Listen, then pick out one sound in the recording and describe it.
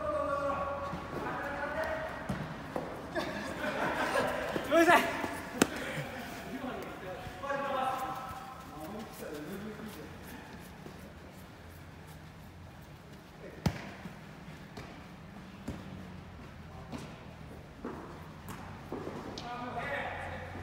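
Men and women shout to each other with animation in a large echoing hall.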